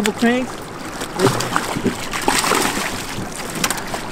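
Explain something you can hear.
A fish splashes and thrashes in the water.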